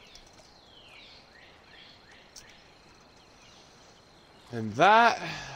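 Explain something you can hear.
Water laps gently in the quiet outdoors.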